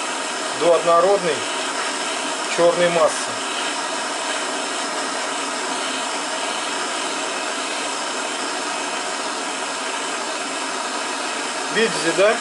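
A gas torch roars steadily with a hissing flame.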